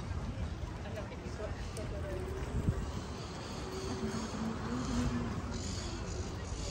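Adult men and women chat nearby as they walk past.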